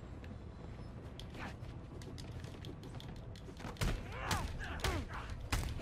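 Heavy punches thump and whoosh in a fight.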